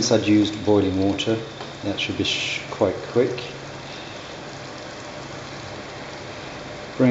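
A spoon stirs a thick stew in a metal pan.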